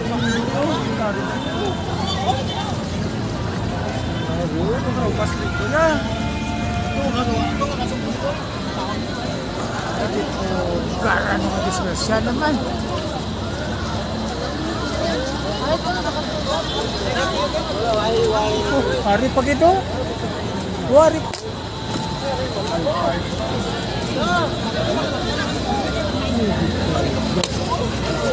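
A crowd of men and women talk and shout excitedly nearby, outdoors.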